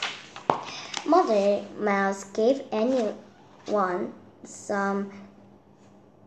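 A young girl reads aloud clearly, close by.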